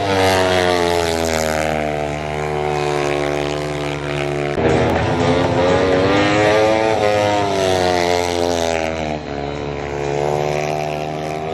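A motorcycle engine roars loudly, its pitch rising and falling.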